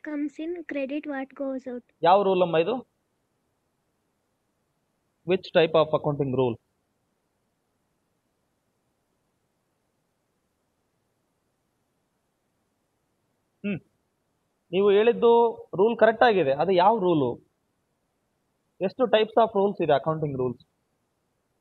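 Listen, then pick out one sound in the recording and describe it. A man speaks calmly through an online call, in short bursts with long pauses.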